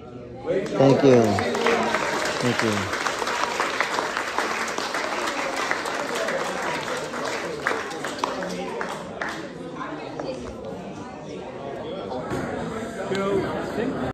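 A crowd of men and women chatters and murmurs in a room.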